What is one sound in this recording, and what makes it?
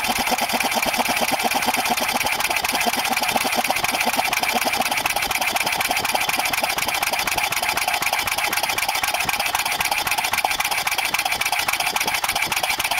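A small engine runs close by with a fast, rattling drone that slowly drops in pitch.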